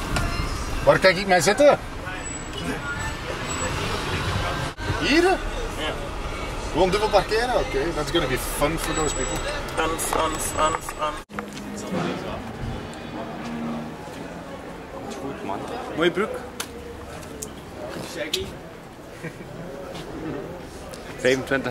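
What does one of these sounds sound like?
Several young men talk and call out close by, outdoors.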